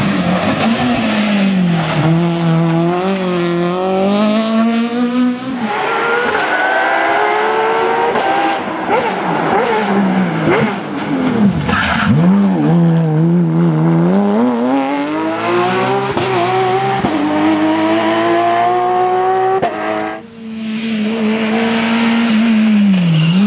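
A rally car engine roars close by, revving high and dropping as gears change.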